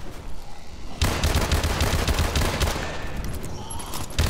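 An explosion booms with a deep, rumbling roar.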